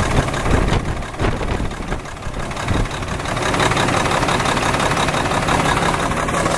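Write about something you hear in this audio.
A diesel engine idles loudly and steadily up close.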